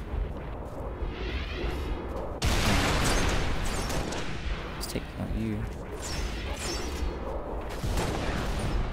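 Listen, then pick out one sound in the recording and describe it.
Gunfire cracks from a rifle in a video game.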